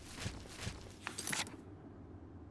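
A paper map rustles open.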